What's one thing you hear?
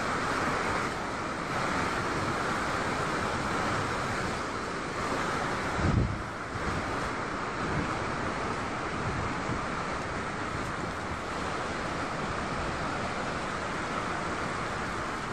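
A mountain torrent rushes and roars over rocks.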